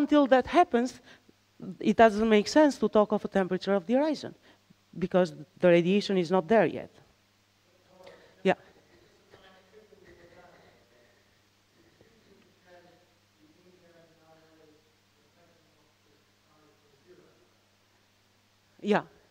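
A woman lectures calmly through a microphone, at times loud and close, at times faint.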